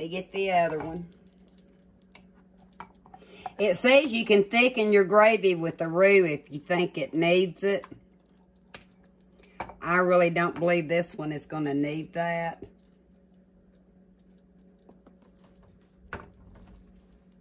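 A spatula scrapes against a ceramic pot.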